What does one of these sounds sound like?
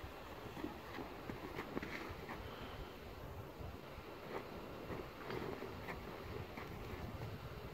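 A backpack's fabric rustles and its buckles click as someone handles it.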